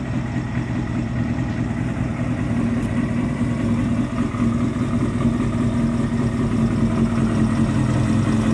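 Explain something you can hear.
A motorcycle engine idles steadily with a low rumble close by.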